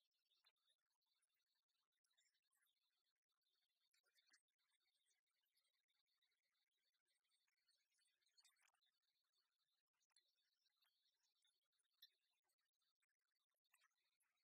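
Chopsticks clink faintly against a bowl.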